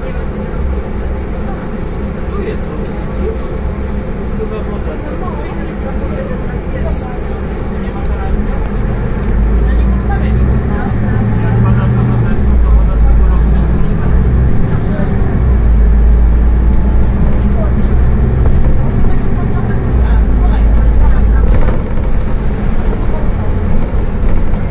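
A bus engine hums low, idling and then growing louder as the bus pulls away.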